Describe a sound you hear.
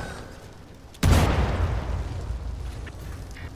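An explosion booms loudly and rumbles away.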